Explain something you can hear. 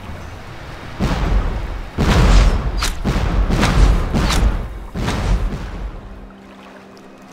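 Cannon shots boom and explosions rumble loudly.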